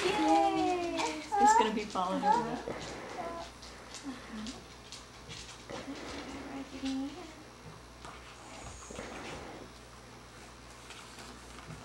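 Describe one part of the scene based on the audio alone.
Pages of a book rustle as they turn.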